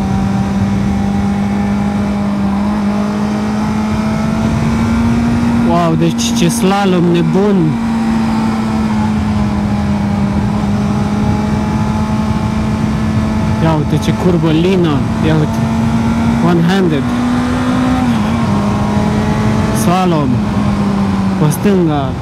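A motorcycle engine hums steadily, its pitch rising slightly and later dropping.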